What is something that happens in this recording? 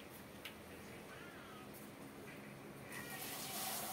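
Dishes clink against each other.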